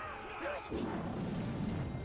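A sword slashes and clangs in a fight.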